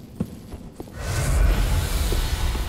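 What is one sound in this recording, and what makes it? A fiery magic burst whooshes and roars.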